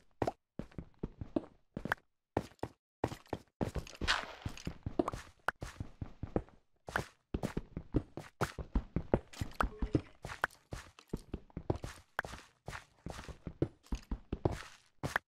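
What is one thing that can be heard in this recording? A pickaxe chips and crunches through stone in quick knocks.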